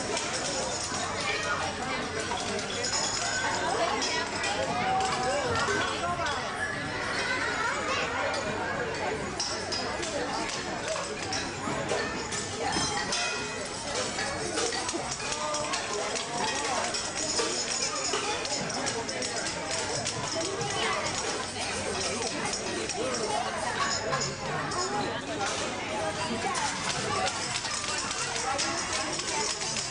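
A crowd of children and adults chatters loudly in an echoing hall.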